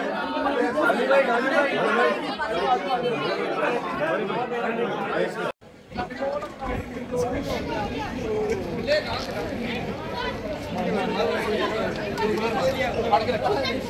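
A large crowd of young men talks and shouts excitedly close by.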